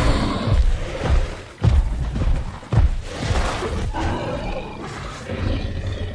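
A large creature's heavy footsteps thud on snow.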